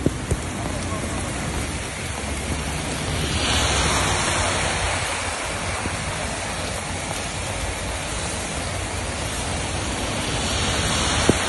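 Heavy rain pelts a flooded road.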